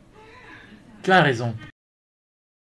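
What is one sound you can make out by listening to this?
A younger man speaks sharply, close by.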